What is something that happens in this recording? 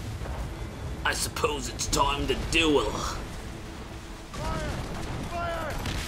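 Cannons fire with loud booms.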